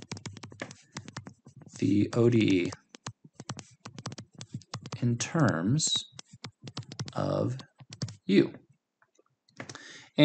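A stylus taps and scratches on a tablet surface.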